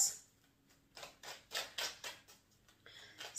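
Cards riffle and slap softly as they are shuffled.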